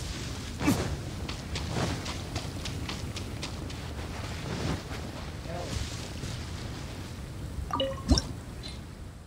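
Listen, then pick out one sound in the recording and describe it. Footsteps run quickly over sand and grass.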